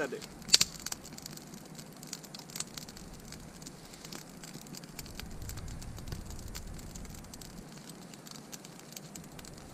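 Flames roar as a fire blazes up.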